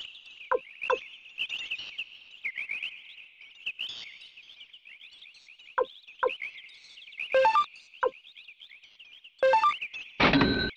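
Short electronic menu beeps sound several times.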